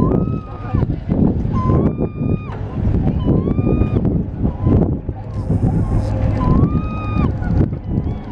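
Large gulls give drawn-out mewing calls close by.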